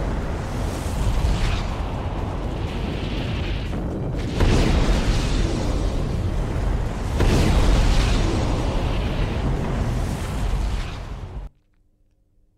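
Explosions rumble and roar deeply.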